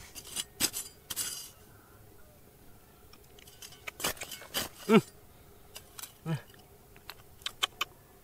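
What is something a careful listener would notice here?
A metal blade scrapes against stones.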